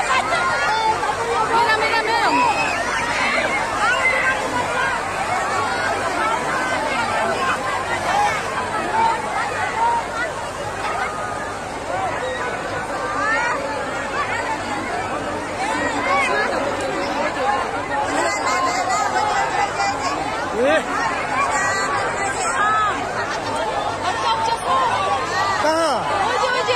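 A crowd of men and women shout and scream excitedly close by.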